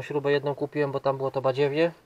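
A plastic bag rustles in a hand.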